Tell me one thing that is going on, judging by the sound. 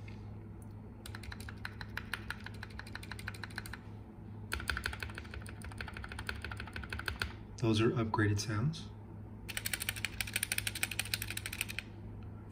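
Keyboard keys clack rapidly in quick bursts.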